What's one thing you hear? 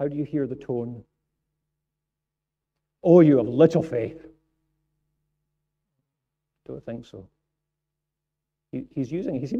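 A middle-aged man speaks calmly into a microphone, with pauses between phrases.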